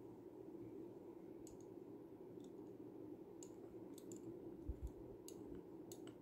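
A glass dropper clinks softly against an ink bottle.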